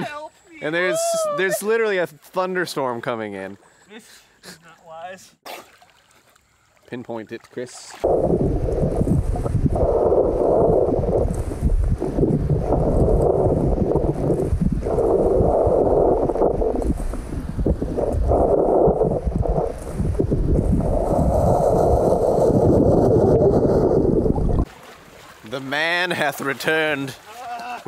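Water splashes as a person wades through a shallow river.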